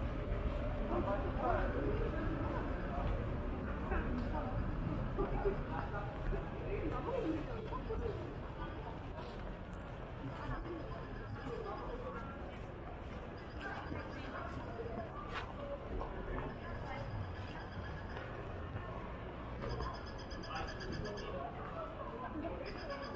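A murmur of voices from passers-by carries outdoors.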